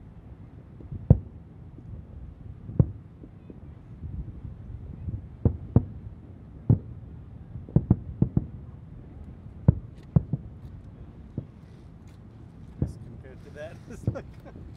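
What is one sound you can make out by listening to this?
Distant fireworks boom and thud irregularly.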